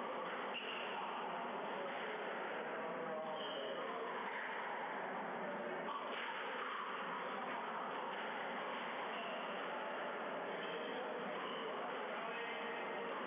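A squash ball smacks against racquets and walls, echoing in a hard-walled room.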